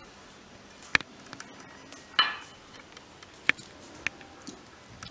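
Small metal dishes clink against each other.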